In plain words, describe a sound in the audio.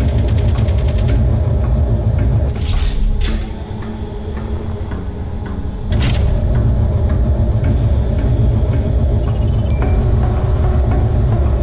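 A low engine hum drones steadily.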